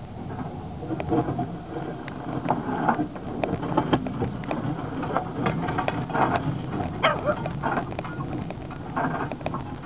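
Train wheels clack and rattle over the rails.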